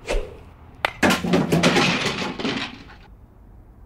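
A tree trunk cracks and splits.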